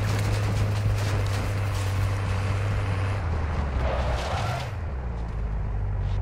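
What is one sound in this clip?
A truck engine rumbles steadily as the vehicle drives over rough ground.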